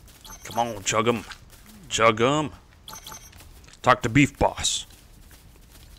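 A man talks with animation close to a microphone.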